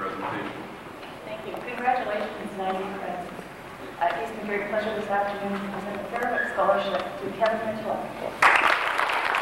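A middle-aged woman reads out names over a loudspeaker in a large hall.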